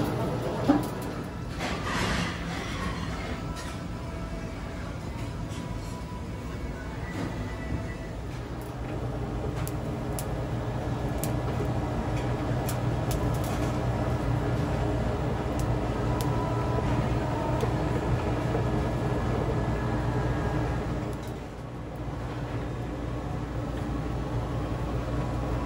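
Fat sizzles and crackles as meat roasts over a fire.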